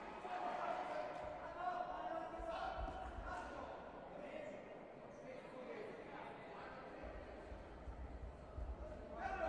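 A crowd murmurs and calls out in a large echoing hall.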